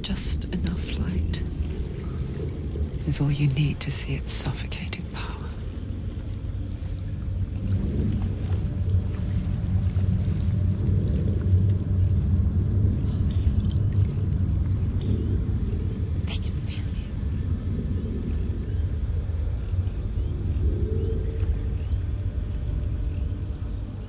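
Water splashes as someone wades slowly through it.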